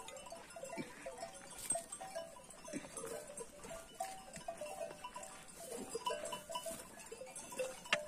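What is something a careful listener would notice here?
Sheep tear and munch grass close by.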